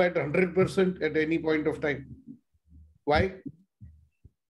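An elderly man speaks calmly through an online call microphone, with pauses.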